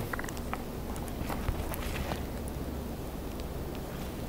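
Crispy fries crunch and rustle as they are handled.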